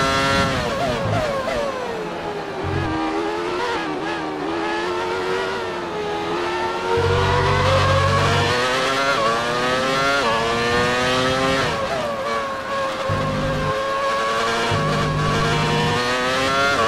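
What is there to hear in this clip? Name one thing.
A racing car engine whines loudly, its pitch rising and falling as the car speeds up, brakes and changes gear.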